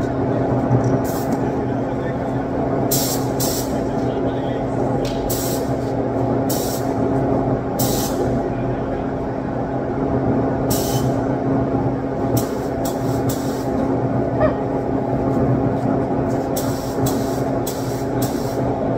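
A spray gun hisses in short bursts.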